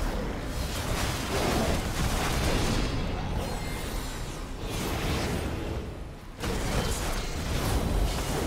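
Spell blasts and impacts crackle and boom in quick succession.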